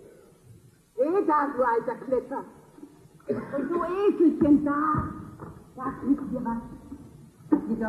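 A woman sings with feeling in a large, echoing hall.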